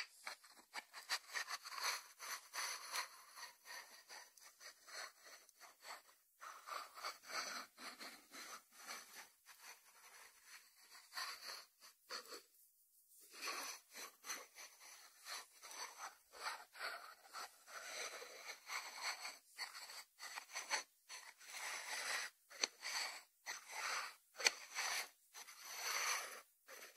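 Fingertips tap on the lid of a ceramic dish.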